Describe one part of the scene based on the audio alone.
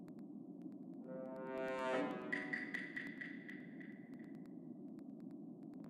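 A rising game sound effect swells and rings out.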